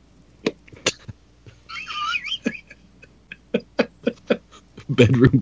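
Several men laugh heartily over an online call.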